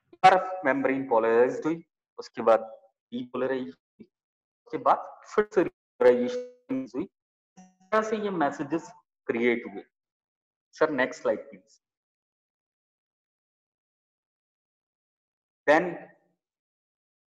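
A man speaks calmly through an online call.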